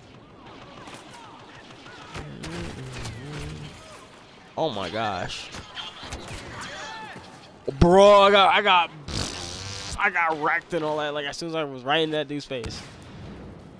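Blaster shots fire.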